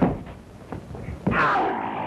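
A creature roars loudly.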